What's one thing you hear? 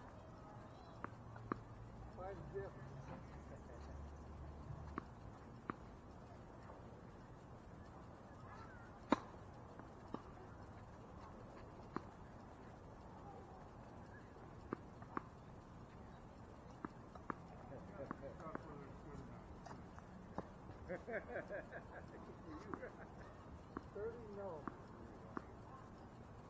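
Tennis balls pop sharply off racquets on an outdoor court.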